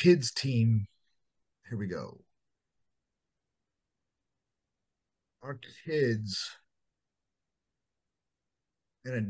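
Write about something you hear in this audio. A man speaks calmly in short phrases with pauses, close to a microphone.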